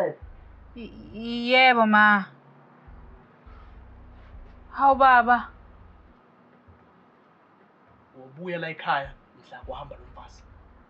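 A young man speaks calmly, then with animation, nearby.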